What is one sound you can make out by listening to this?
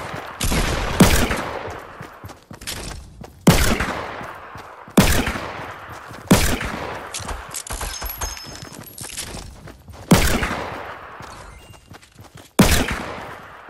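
A shotgun fires loud blasts, each with an echoing tail.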